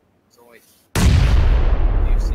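A second grenade explodes with a loud boom.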